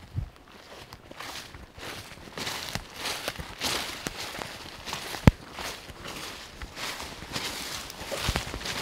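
Footsteps rustle through leafy undergrowth outdoors.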